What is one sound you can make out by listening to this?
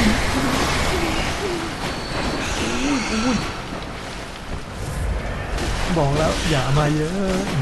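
Large rats squeal and screech.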